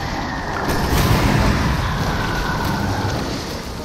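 A fiery explosion roars and crackles.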